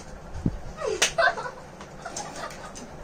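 A young woman claps her hands.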